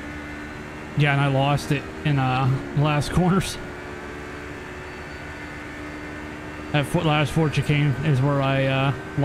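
A racing car engine revs loudly through quick gear shifts.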